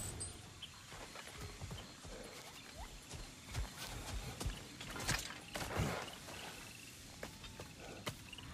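Footsteps thud on soft forest ground.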